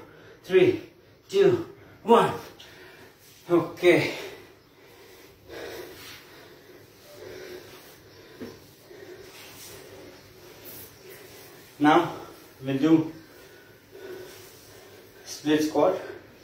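A man speaks in short bursts close by, with effort.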